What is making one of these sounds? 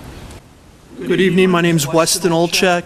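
A man speaks loudly and forcefully into a microphone.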